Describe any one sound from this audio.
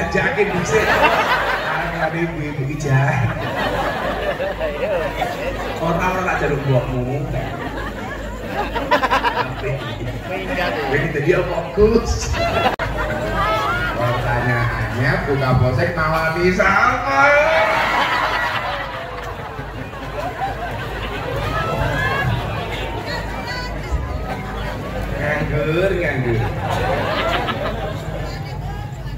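A man speaks with animation into a microphone over a loudspeaker, in a large echoing space.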